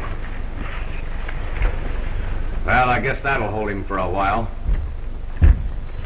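An old recording hisses steadily.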